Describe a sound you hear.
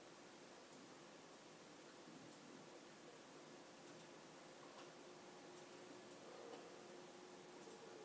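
Small dogs shift and rustle in a soft bed.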